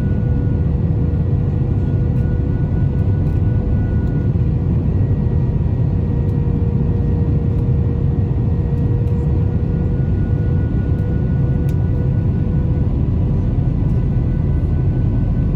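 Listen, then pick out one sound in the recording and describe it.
Jet engines roar steadily with a low rumble and a constant whine inside an airliner cabin.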